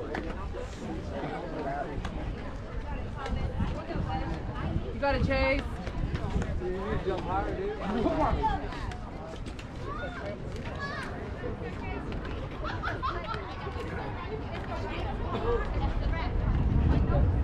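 Young players and adults call out and chatter across an open field.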